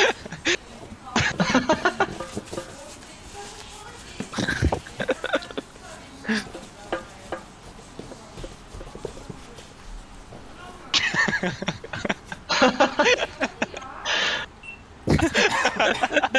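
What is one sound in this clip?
A young man talks animatedly and laughs close to a microphone.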